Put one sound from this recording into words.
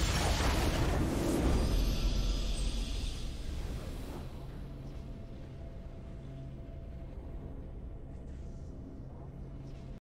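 A triumphant game fanfare swells and then fades to a low hum.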